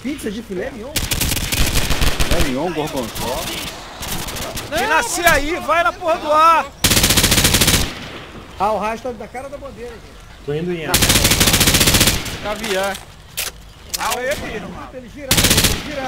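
Rapid gunfire rattles in short, loud bursts.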